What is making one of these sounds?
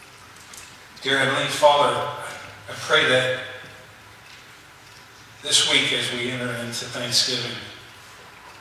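An elderly man preaches through a microphone in a large echoing hall, speaking with emphasis in short bursts.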